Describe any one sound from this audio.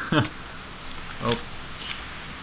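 A skeleton's bones rattle.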